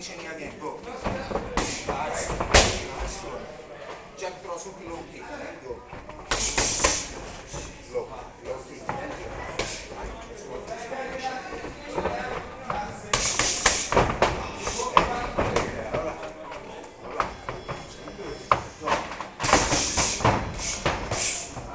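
Bare feet shuffle and thud on a canvas floor.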